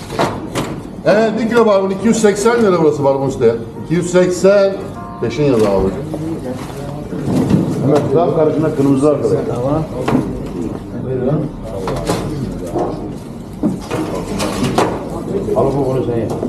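A middle-aged man talks loudly and with animation close by.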